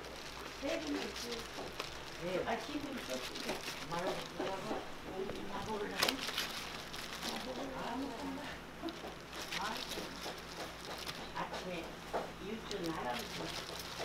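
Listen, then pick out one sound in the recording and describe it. Foam trays tap softly as food rolls are set into them.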